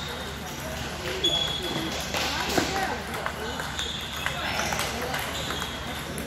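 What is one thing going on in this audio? A table tennis ball clicks against paddles and bounces on a table.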